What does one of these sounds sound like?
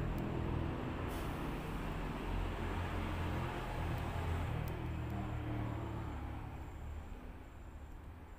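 A spoon clinks and scrapes inside a cup as a drink is stirred.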